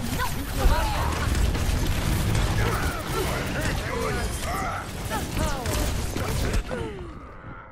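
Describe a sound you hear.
Game explosions and impacts boom loudly.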